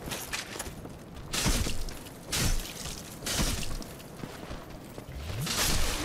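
Metal weapons strike and clang against a shield.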